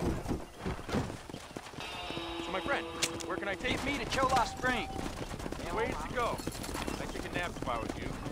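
Wooden wagon wheels creak and rumble as a stagecoach rolls along.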